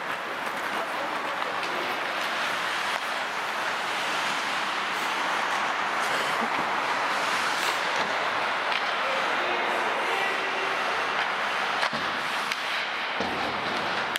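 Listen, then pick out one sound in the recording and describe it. Hockey sticks click and clack against a puck.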